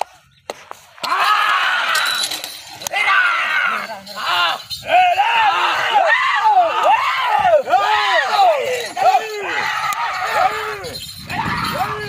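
Several men shout to urge on a pair of bullocks.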